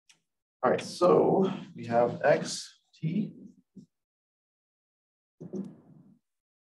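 A man speaks calmly and clearly, as if explaining.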